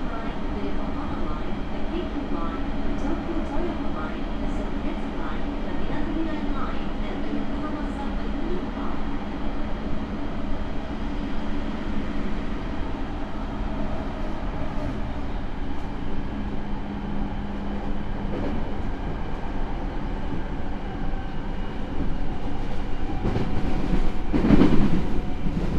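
A train car rumbles and rattles steadily along the tracks.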